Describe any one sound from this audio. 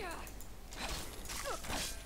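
A large crab clacks its claws.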